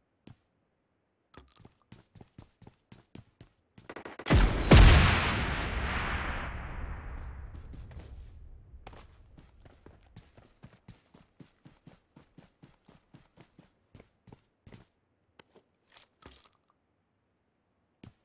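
Quick footsteps run over gravel and grass.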